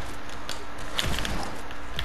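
A pickaxe strikes with sharp clanking hits.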